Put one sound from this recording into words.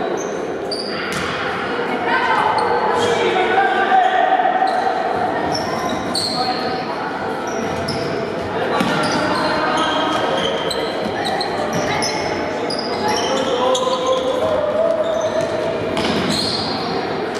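A ball thuds on a hard floor as it is kicked.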